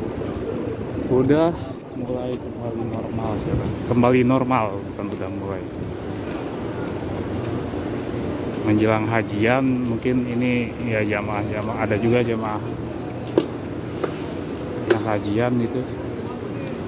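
A man speaks close by in a calm, casual voice.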